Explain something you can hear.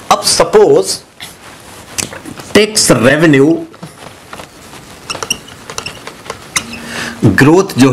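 A middle-aged man speaks calmly into a close microphone, explaining.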